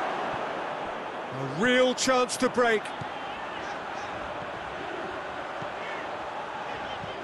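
A football is kicked along the grass.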